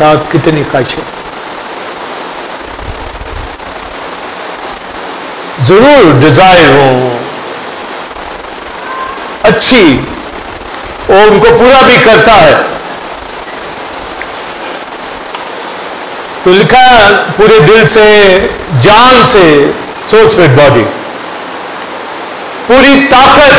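A middle-aged man preaches with emphasis into a microphone, in bursts with pauses, heard through a loudspeaker in a large room.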